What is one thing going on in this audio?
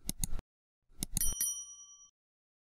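A small bell rings briefly.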